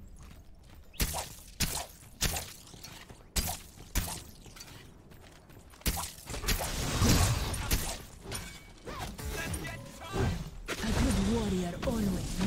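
Game weapons fire and strike in sharp bursts.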